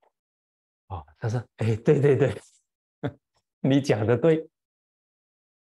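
An elderly man laughs heartily.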